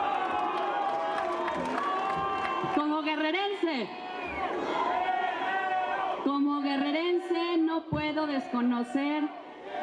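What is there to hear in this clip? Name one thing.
A woman speaks with animation into a microphone, heard through loudspeakers.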